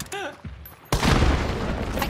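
A gunshot bangs loudly and echoes.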